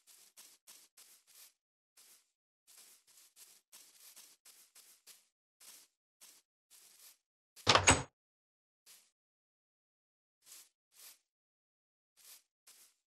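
Footsteps tread on grass.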